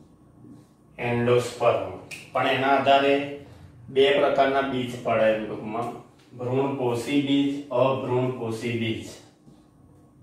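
A man speaks clearly into a headset microphone, explaining calmly.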